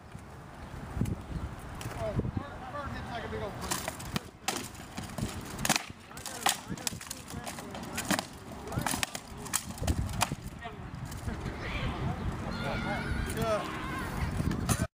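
Wooden swords clack and thud against shields in sharp, irregular blows.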